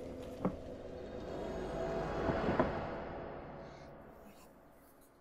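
A shimmering magical whoosh swells and then fades away.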